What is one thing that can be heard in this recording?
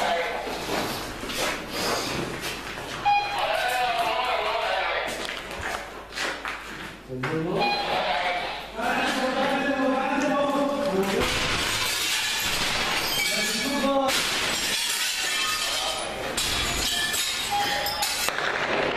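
Men talk with animation close by, in an echoing empty room.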